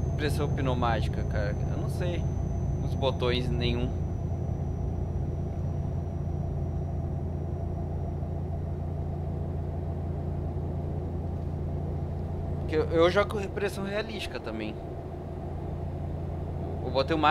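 A truck engine hums low and steady.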